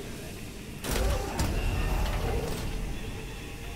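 A heavy metal door slides open with a loud mechanical rumble.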